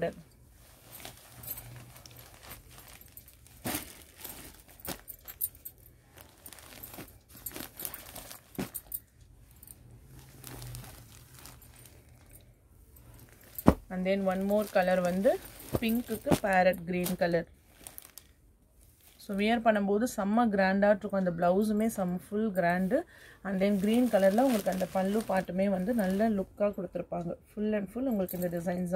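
Silk fabric rustles and swishes as it is handled and folded.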